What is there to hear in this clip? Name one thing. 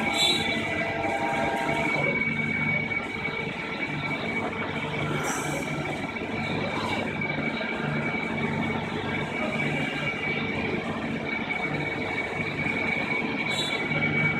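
A cutting tool grinds against metal.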